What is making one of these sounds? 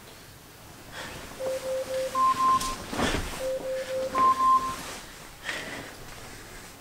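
Bedsheets rustle as a man sits up in bed.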